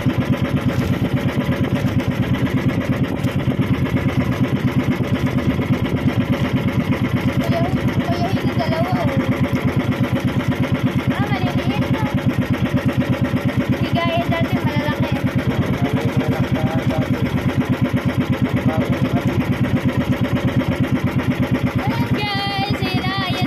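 A boat engine chugs loudly and steadily close by.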